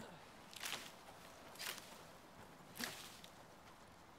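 A blade swishes and chops through palm leaves.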